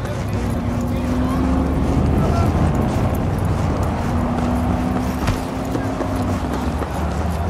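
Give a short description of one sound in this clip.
A steady city hum of traffic fills the air.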